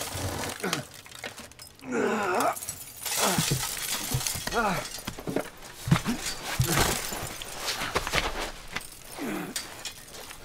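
A body scrapes and bumps against a vehicle window frame while climbing out.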